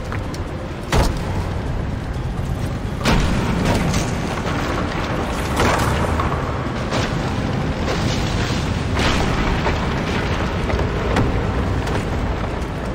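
Wooden scaffolding creaks, cracks and collapses with loud crashes.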